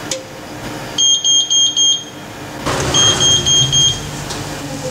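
An oven timer beeps in quick bursts.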